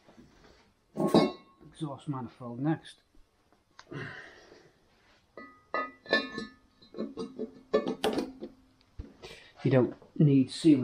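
Metal engine parts clank and knock as they are handled.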